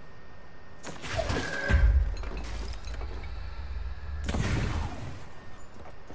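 A heavy crate crashes through furniture with a loud bang.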